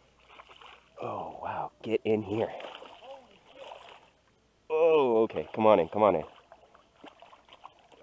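A fish splashes and thrashes at the surface of the water.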